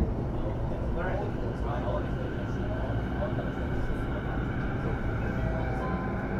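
An electric train rumbles steadily as it runs.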